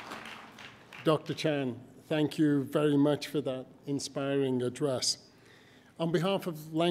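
An older man speaks through a microphone in a large hall.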